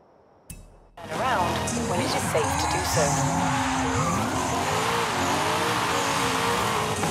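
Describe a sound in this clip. Tyres screech and spin on the road.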